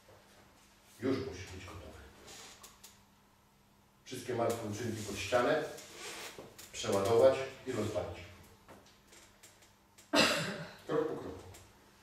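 A middle-aged man speaks with animation to a small group.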